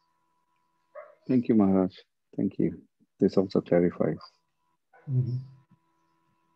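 A man speaks calmly over an online call.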